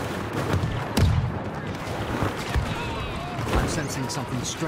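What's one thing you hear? Blaster shots crackle and zap nearby.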